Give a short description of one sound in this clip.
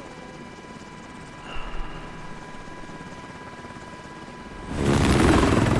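Helicopter rotors thud and whir steadily.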